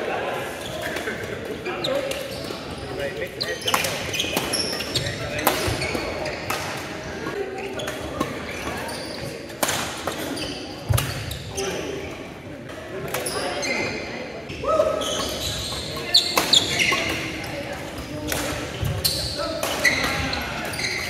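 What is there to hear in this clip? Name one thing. Shuttlecocks are struck with rackets in sharp pops, heard in a large echoing hall.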